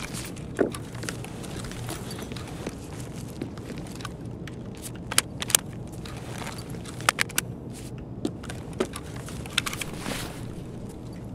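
Footsteps crunch on a littered floor.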